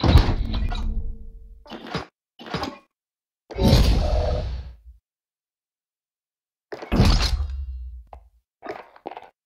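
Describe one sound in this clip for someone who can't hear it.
Loud whooshing game reward sounds swell and fade.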